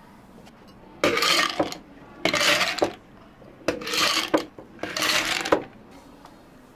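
Ice cubes clatter into glass jars.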